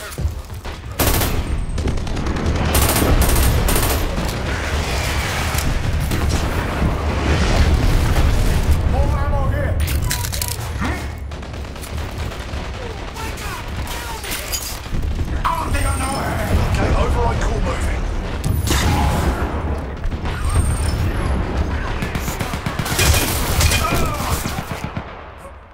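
Rapid gunfire clatters close by.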